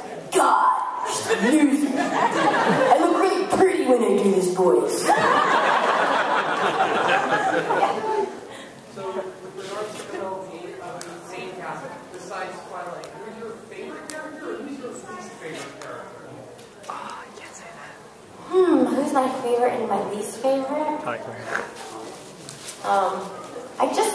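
A woman speaks with animation into a microphone in a large echoing hall.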